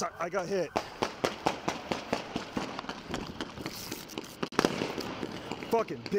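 Footsteps run quickly over pavement outdoors.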